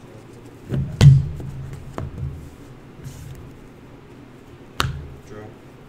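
A deck of cards knocks on a tabletop.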